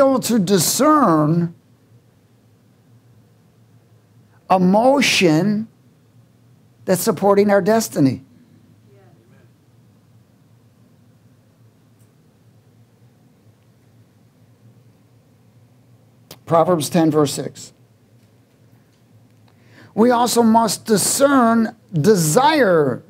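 A man preaches with passion through a microphone, speaking in loud bursts with long pauses.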